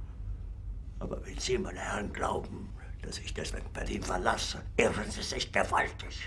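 An elderly man speaks angrily and forcefully, close by.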